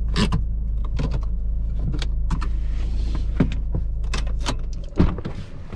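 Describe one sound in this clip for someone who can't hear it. A car body rattles and knocks over a bumpy dirt road.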